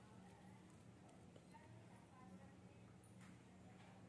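Soft boiled food is squashed by hand.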